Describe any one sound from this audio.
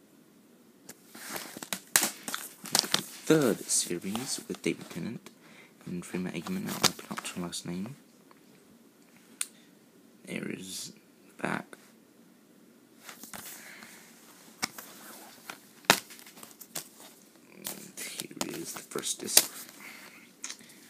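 A plastic disc case crackles and clicks.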